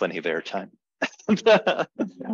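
A man laughs over an online call.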